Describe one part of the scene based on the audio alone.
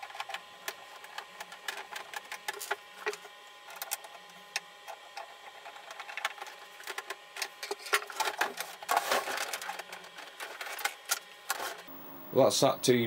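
Cables and plugs click and rattle against the back of a television set.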